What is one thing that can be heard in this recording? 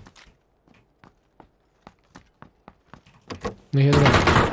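Footsteps tap steadily across a hard floor.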